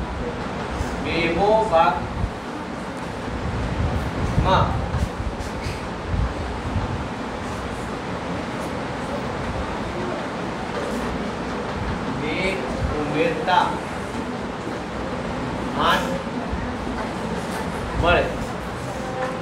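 A man speaks calmly in short phrases.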